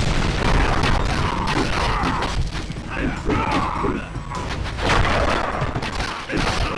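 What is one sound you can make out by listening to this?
Swords clash and strike in a fast fight.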